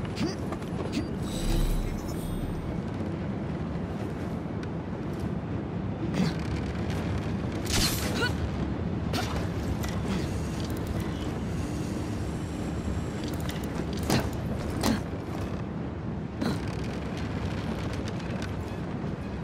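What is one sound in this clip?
Wind rushes steadily.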